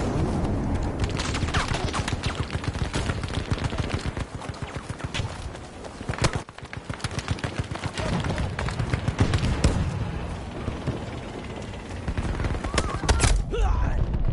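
A rifle fires.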